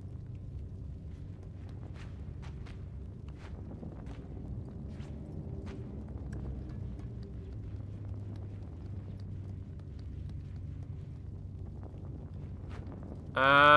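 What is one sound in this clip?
Small footsteps patter on a hard floor.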